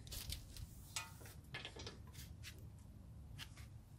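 A wrench clicks against metal.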